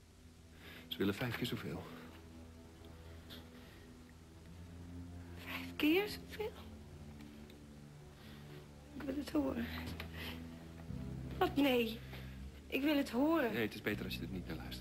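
A woman speaks in a tense, emotional voice.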